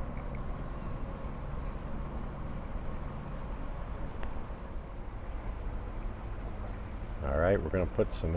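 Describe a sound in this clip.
A stream trickles gently outdoors.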